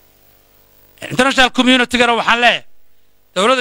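A man speaks firmly into a microphone, heard through a loudspeaker with a slight echo.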